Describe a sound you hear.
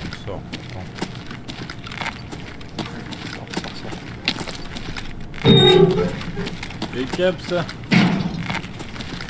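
Footsteps crunch over gritty debris at a steady walking pace.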